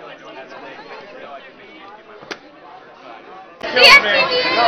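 A lively crowd chatters.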